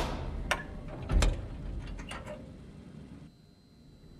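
A small metal door creaks open.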